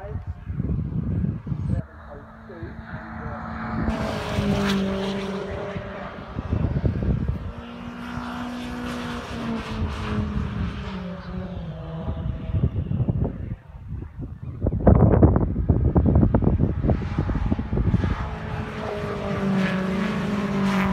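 Racing car engines roar as the cars speed past on a track in the open air.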